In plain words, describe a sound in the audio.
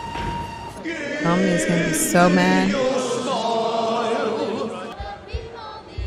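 A group of men sing together loudly.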